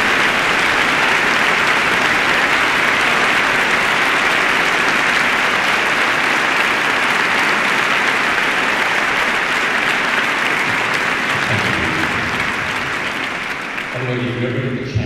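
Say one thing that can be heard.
A large crowd applauds in an echoing arena.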